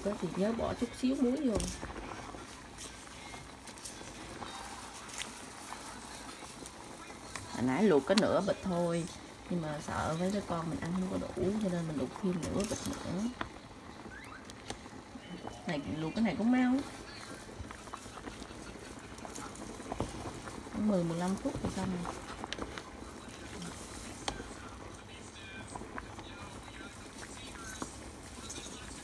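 Water bubbles at a rolling boil.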